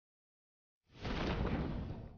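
Wind rushes loudly as a game character parachutes down.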